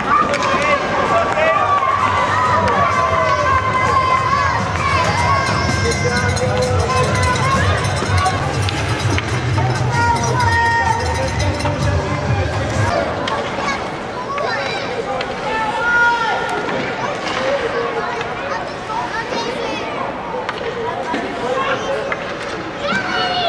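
Children shout and call out in a large echoing arena.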